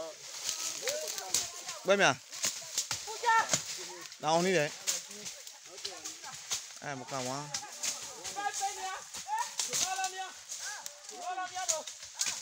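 Men call out and talk loudly with animation outdoors.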